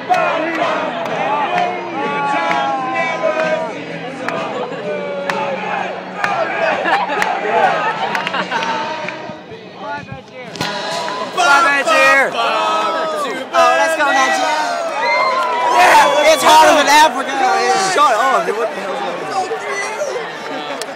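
A large crowd sings together loudly outdoors.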